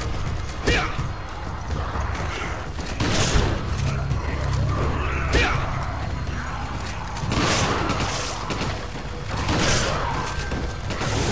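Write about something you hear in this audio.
A monster growls and shrieks.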